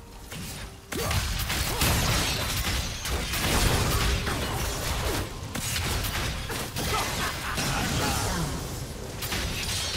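Game spells crackle and blast in a noisy fight with rapid impacts.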